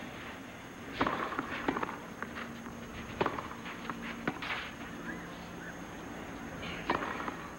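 Tennis balls are struck sharply by rackets in a rally.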